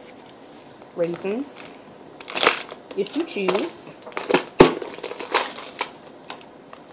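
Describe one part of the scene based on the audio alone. A cardboard container rustles and thumps as it is handled.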